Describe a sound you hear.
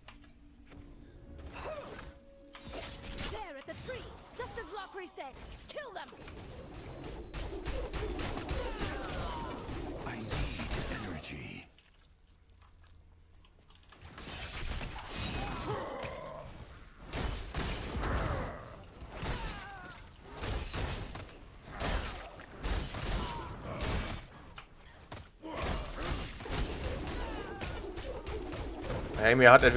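Magic blasts whoosh and crackle.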